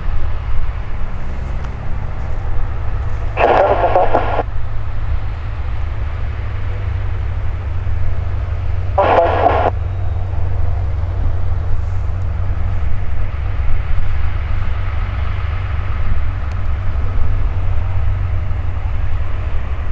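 A small propeller plane's engine hums steadily at a distance.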